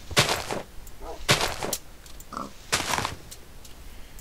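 Leaves rustle and crunch in short bursts as they are broken.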